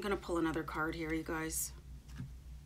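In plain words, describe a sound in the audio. A middle-aged woman speaks calmly and close to the microphone.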